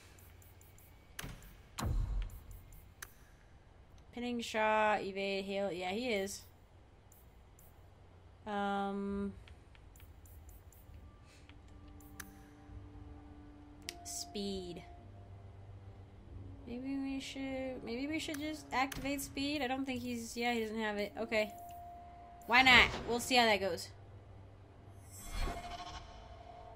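Short interface clicks sound as menu choices change.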